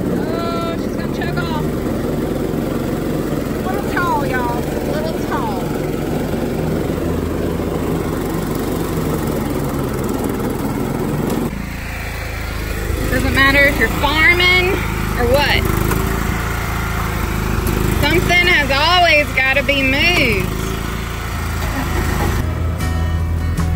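A riding mower's engine rumbles steadily.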